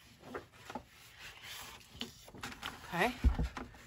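Paper slides and rustles on a hard surface.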